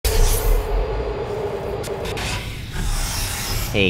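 A sci-fi gun hums as it powers up.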